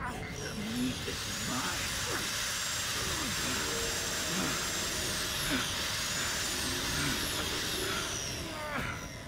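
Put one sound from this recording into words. A circular saw blade whirs with a high whine.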